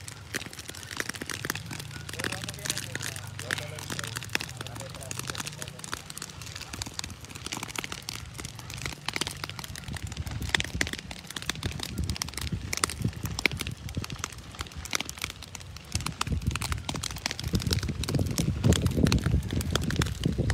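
Burning brush crackles and pops nearby.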